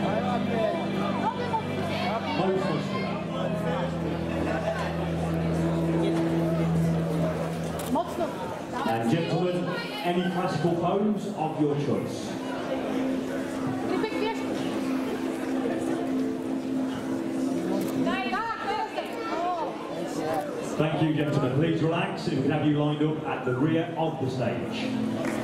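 A man speaks into a microphone, heard over loudspeakers in a large hall.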